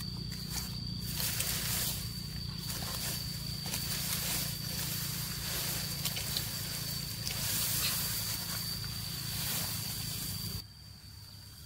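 Cut grass stalks rustle as they are handled.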